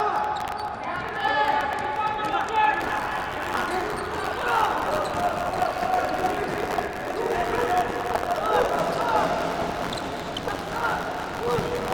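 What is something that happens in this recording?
Sports shoes squeak on a hard indoor floor.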